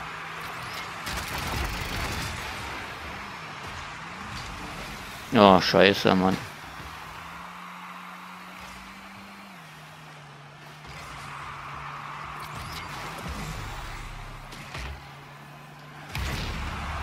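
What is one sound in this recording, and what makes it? A game car's rocket boost whooshes.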